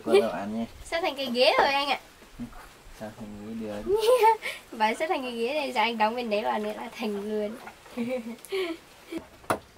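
A young woman talks softly and playfully up close.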